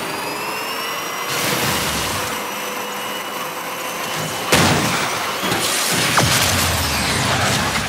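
A car engine roars at high speed, rising in pitch.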